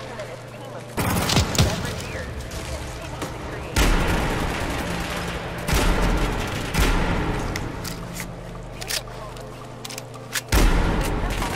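A rifle fires loud shots that boom and echo.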